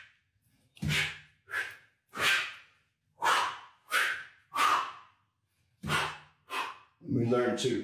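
A man exhales sharply in quick bursts.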